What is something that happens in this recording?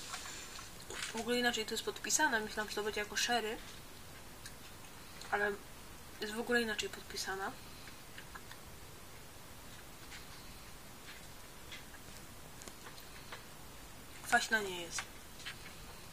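A young woman speaks calmly and close by, in short bursts.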